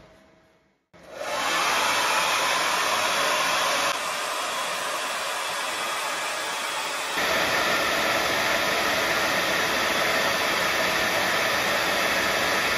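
A hair dryer blows with a loud, steady roar.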